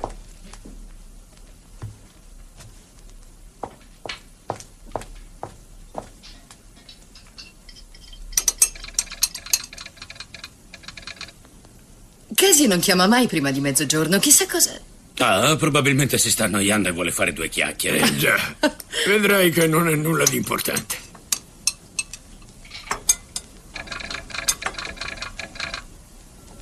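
Dishes and cups clink.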